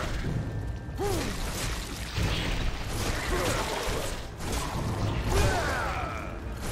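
A giant spider screeches.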